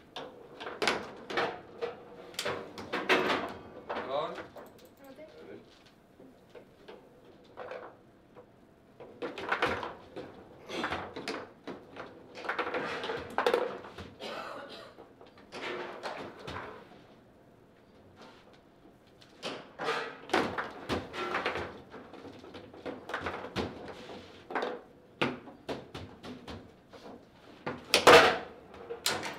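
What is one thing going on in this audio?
Foosball rods clatter and bang as they are spun and slid.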